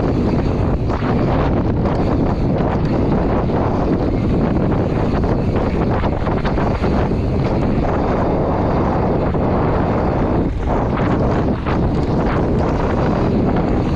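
Bicycle tyres crunch and roll over a dirt trail.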